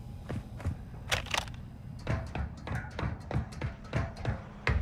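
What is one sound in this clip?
Hands and feet clank on metal ladder rungs.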